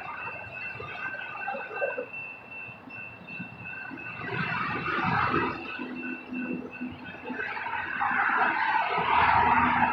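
Cars drive past on a multi-lane road outdoors.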